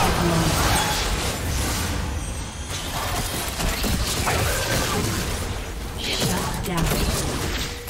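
Game spells whoosh and crackle in quick bursts.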